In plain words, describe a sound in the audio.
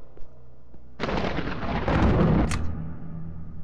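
A game menu opens with a loud whoosh.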